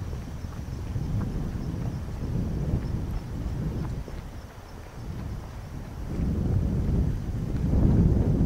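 Wind blows and rumbles across open ground outdoors.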